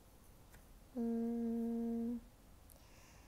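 A young woman hums a short steady note.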